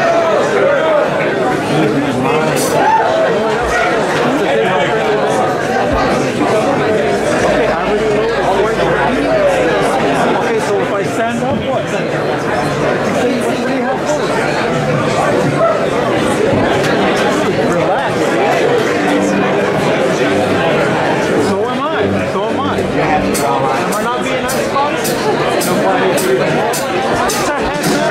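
A rock band plays loudly in a room.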